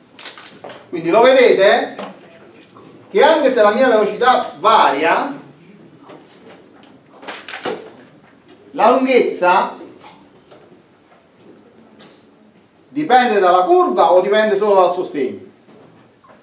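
A middle-aged man lectures with animation.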